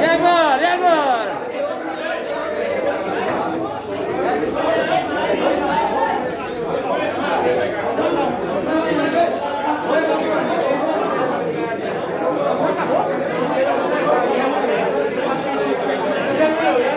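A crowd of men talk and shout over each other nearby.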